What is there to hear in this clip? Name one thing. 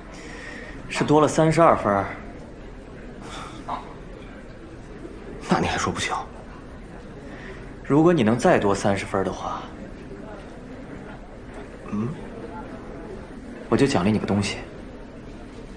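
A second young man answers quietly up close.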